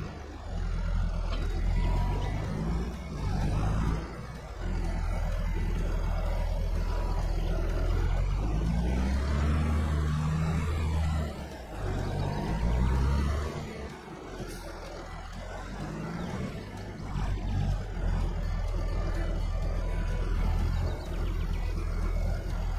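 A tractor engine rumbles steadily and revs up at times.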